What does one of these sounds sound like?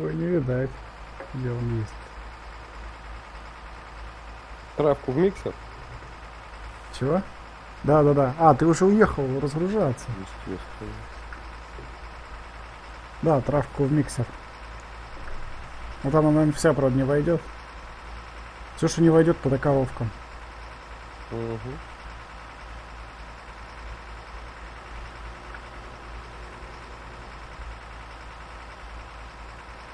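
A truck engine rumbles steadily.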